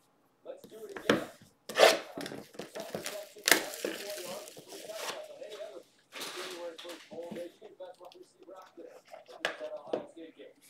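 Cardboard boxes tap and rustle as they are handled.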